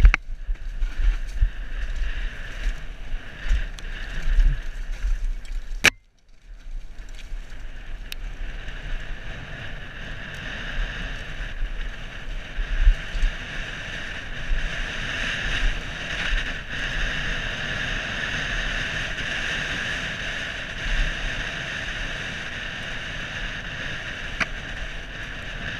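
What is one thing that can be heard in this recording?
Wind buffets the microphone with a low rumble.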